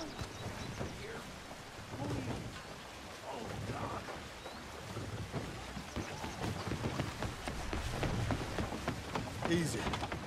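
Boots thud on a wooden bridge.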